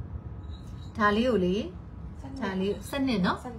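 A young woman speaks with animation up close.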